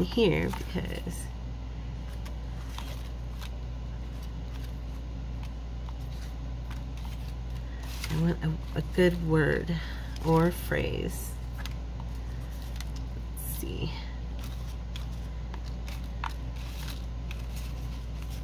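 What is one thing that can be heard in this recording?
Paper scraps rustle and shuffle as hands sort through them.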